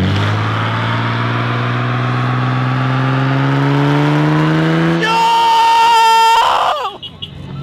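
A car engine revs loudly, rising steadily in pitch.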